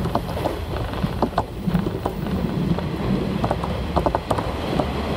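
A train rumbles along the track, heard from inside the carriage.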